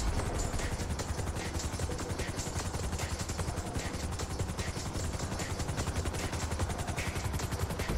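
A helicopter's rotor blades thump rapidly and steadily overhead.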